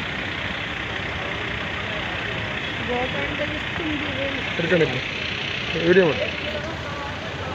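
Car and van engines idle in stopped traffic.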